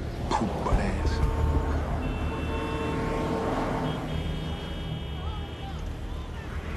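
Car horns blare in long blasts.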